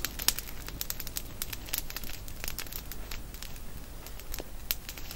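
A small campfire crackles and pops close by.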